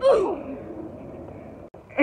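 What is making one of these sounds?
A body thumps onto the ground.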